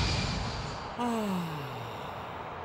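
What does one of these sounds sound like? A man lets out a long falling groan.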